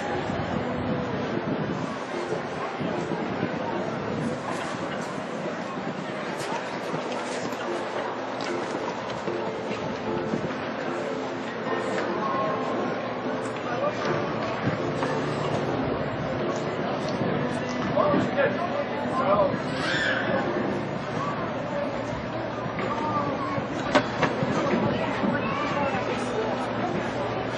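Spectators murmur and chatter nearby, outdoors.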